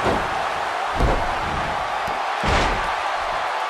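Heavy thuds of bodies hitting a wrestling mat.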